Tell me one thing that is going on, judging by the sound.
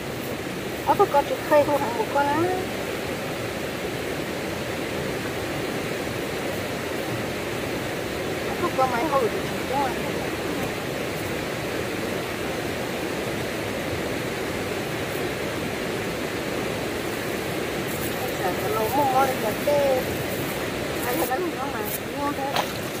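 Hands rustle a mesh sack against dry soil.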